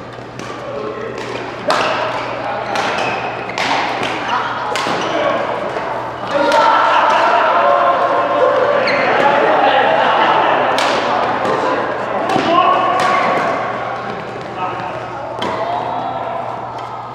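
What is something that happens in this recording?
Rackets hit a shuttlecock in sharp pops, echoing in a large hall.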